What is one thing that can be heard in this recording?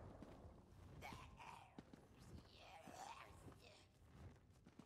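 A young man talks casually into a microphone, close by.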